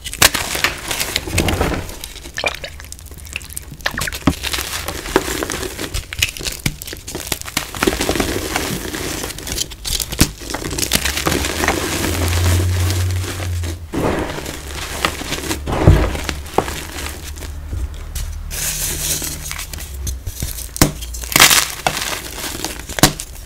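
Powder sifts and pours through fingers with a soft hiss.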